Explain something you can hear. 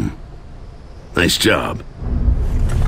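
A deep-voiced man answers briefly and calmly.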